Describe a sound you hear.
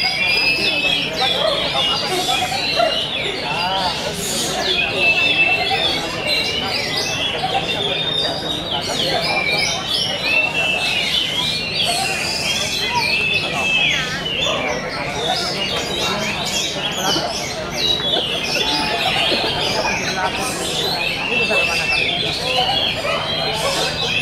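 A caged songbird sings loud, busy, chirping phrases.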